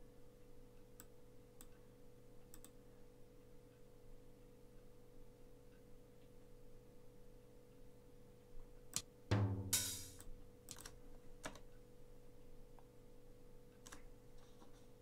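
A computer mouse clicks softly a few times.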